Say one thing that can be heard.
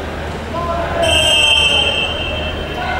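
A referee blows a sharp whistle in a large echoing hall.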